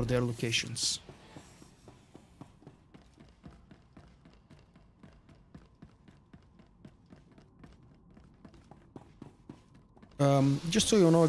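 Quick footsteps tap on a metal floor.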